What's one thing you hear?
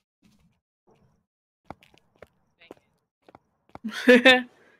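Footsteps tap on a hard path.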